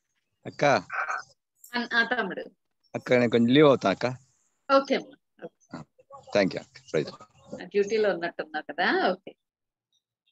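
A middle-aged woman speaks warmly over an online call.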